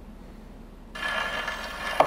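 Music begins playing from a record.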